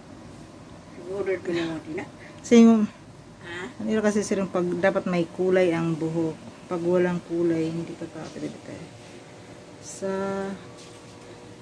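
A woman talks calmly, close to the microphone.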